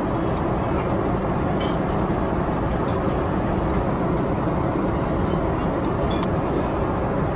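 A metal spoon clinks and scrapes against a ceramic plate.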